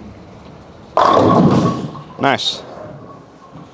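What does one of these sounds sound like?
Bowling pins crash and clatter loudly.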